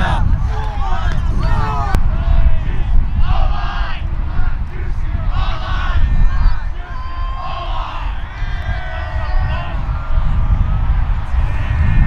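Young men shout and cheer together outdoors.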